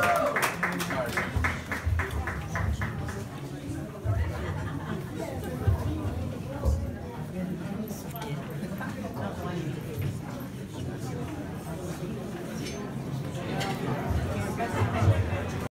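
A crowd murmurs and talks in a busy room.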